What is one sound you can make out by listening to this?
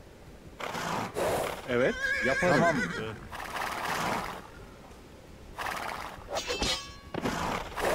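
Swords clash in a battle.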